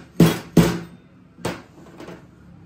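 Metal parts clink and knock together.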